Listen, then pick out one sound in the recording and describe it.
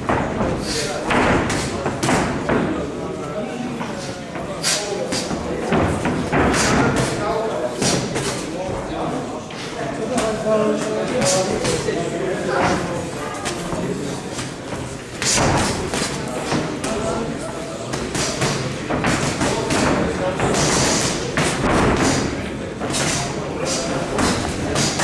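A crowd of spectators murmurs and shouts in a large echoing hall.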